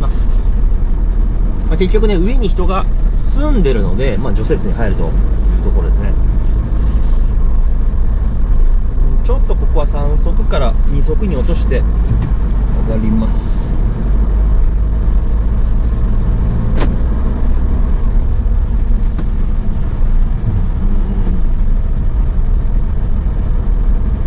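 Tyres crunch over packed snow.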